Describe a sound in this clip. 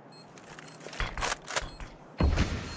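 A young man speaks excitedly into a headset microphone.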